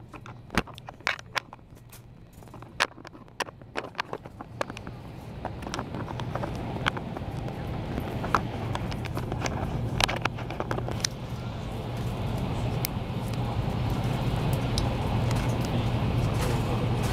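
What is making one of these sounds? Sharp clicks and knocks sound inside a moving train carriage.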